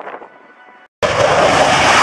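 A jet roars loudly at full power nearby.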